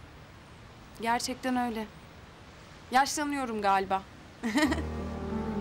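A young woman speaks softly and warmly nearby.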